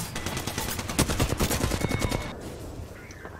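Rapid automatic gunfire rattles loudly.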